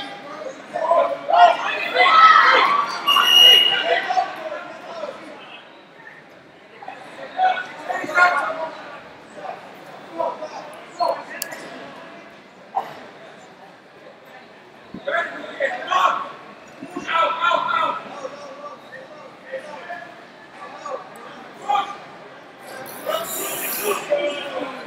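Men shout instructions from the side of a wrestling mat.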